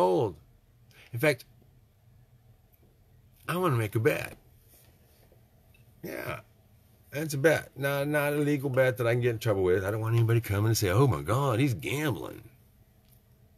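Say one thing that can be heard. An older man talks with animation close to a microphone, in short bursts.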